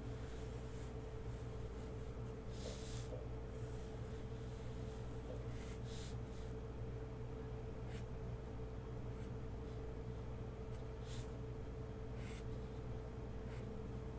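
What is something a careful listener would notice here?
A marker scratches and squeaks across paper in short strokes.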